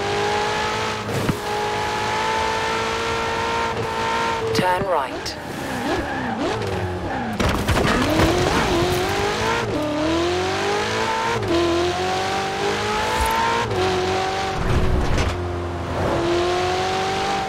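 A sports car engine roars at high revs, dropping and rising as gears shift.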